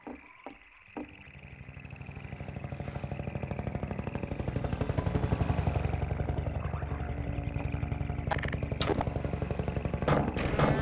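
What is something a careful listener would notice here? A winch motor rumbles and clanks steadily.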